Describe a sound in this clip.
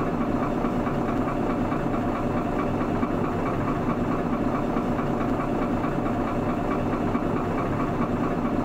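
A bus engine idles with a steady rumble.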